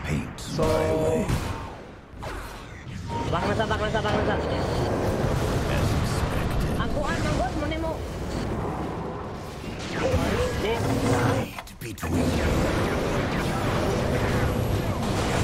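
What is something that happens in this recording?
Game battle effects crackle and boom.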